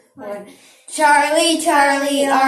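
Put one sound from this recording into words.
A young boy exclaims loudly close to a microphone.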